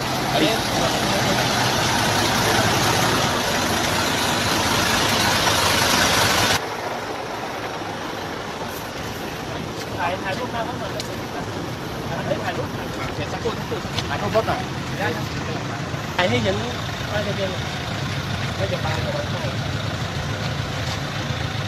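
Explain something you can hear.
A bus engine idles nearby.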